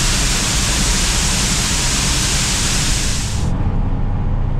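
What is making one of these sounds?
Grain pours steadily out of a hopper with a loud rushing hiss.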